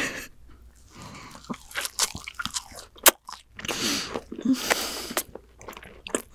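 A young woman bites into crunchy fried food close to a microphone.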